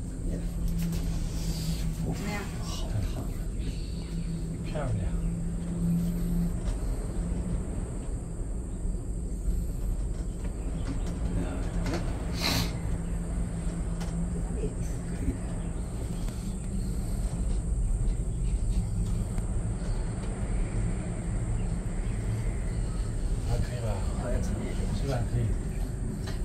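A cable car hums and rumbles steadily as it glides along.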